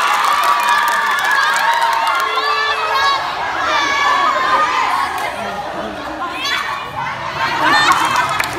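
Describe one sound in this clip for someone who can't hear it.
A group of teenagers shouts and cheers together outdoors.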